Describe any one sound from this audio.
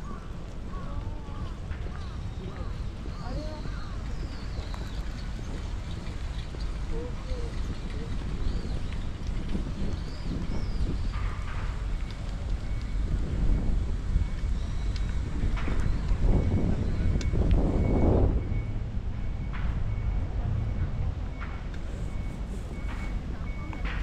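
Wind rumbles steadily across the open outdoors.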